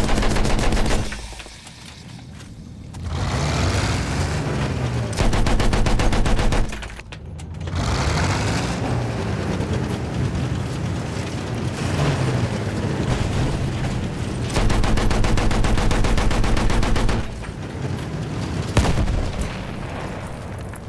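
A heavy tank engine rumbles and clanks steadily.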